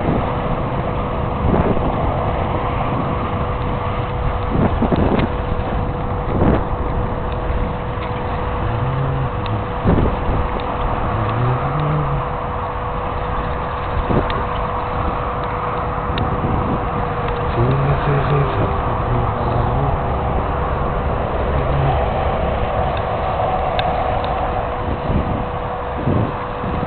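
Wind rumbles and buffets loudly against the microphone outdoors.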